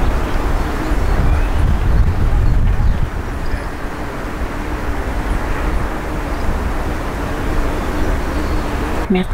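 Wind gusts outdoors, rumbling low and steadily.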